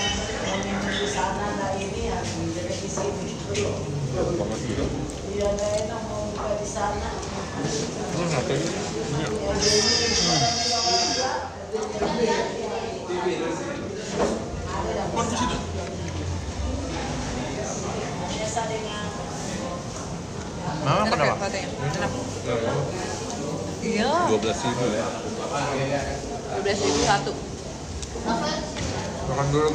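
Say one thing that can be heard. A young woman talks softly close by.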